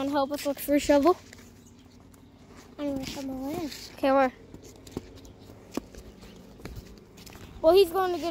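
A young boy talks loudly and excitedly close by.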